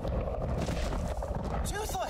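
A man exclaims in surprise.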